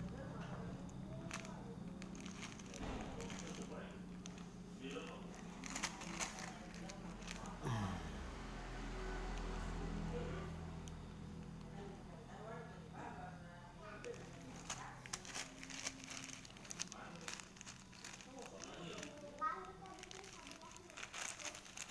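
A plastic bag crinkles as a hand handles it.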